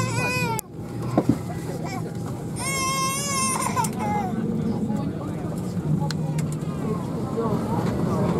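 Passengers talk quietly nearby.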